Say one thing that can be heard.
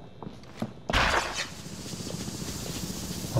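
A smoke grenade bursts and hisses steadily.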